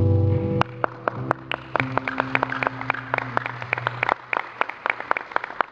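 Bongo drums are tapped in a quick rhythm.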